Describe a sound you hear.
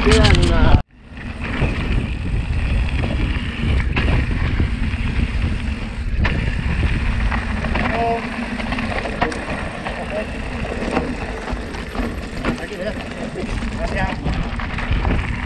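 Bike tyres roll and crunch over loose gravel.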